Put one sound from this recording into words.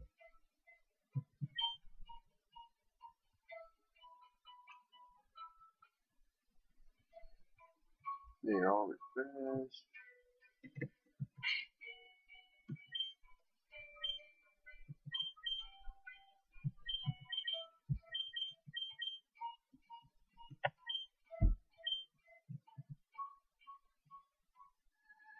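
Simple electronic game music plays in short, bleeping notes.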